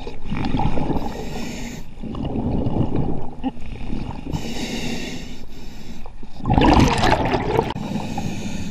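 A diver breathes out through a regulator in rushing bursts of bubbles.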